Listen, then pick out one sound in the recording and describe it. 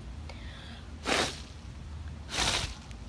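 A young woman blows hard in short puffs, right against the microphone.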